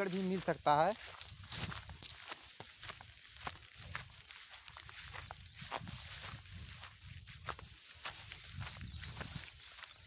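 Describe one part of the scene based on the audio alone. Tall grass rustles close by.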